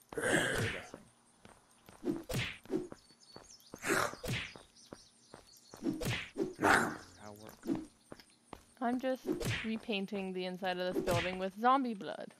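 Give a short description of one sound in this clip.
A hammer thuds in heavy, repeated blows.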